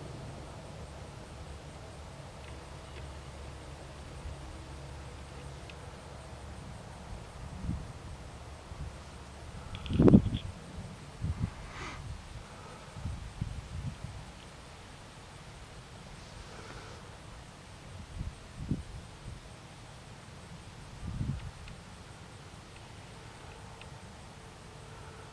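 A farm harvester engine rumbles steadily in the distance.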